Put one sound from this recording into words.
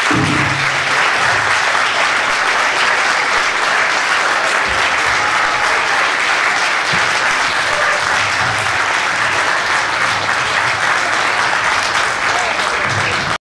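A large audience claps loudly and steadily in a hall.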